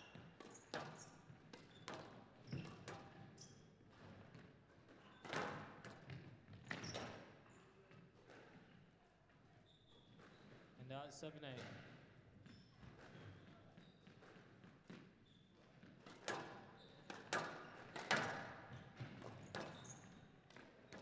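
A squash ball smacks sharply against the walls, echoing in a large hall.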